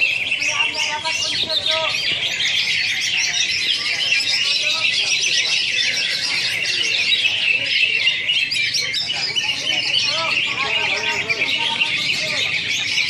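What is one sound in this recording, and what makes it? A crowd of men murmurs and talks in the background, outdoors.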